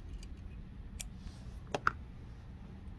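Small scissors snip a thread.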